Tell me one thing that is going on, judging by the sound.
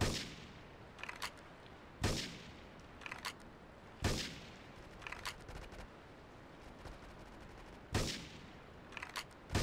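A rifle bolt clicks and clacks shortly after each shot.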